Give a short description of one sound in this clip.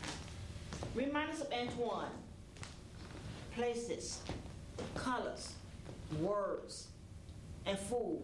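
A woman reads aloud with animation.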